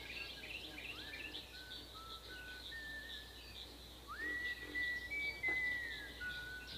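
A young man whistles a few slow, drawn-out notes nearby.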